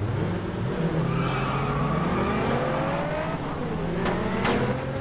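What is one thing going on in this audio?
Tyres squeal as they spin on the road.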